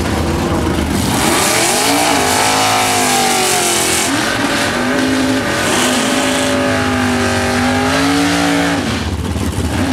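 A car engine roars and revs hard close by.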